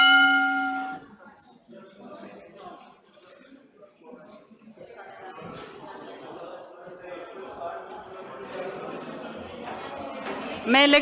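Many men and women murmur and talk quietly in a large echoing hall.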